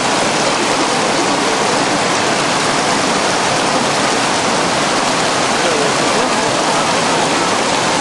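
Whitewater rushes and churns loudly, steady throughout.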